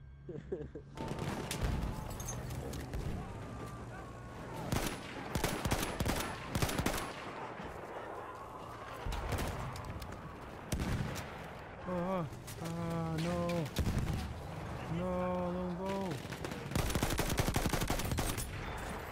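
Rifle shots crack repeatedly, close by.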